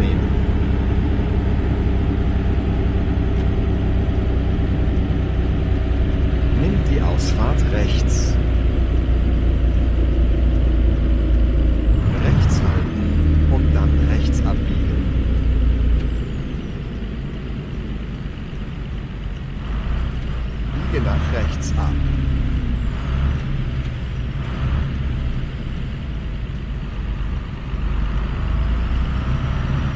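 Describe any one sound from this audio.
A truck engine rumbles steadily, easing off as the truck slows.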